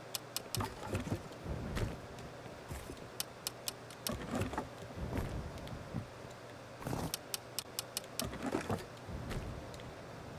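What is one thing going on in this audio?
Soft clicks sound as items are moved around an inventory.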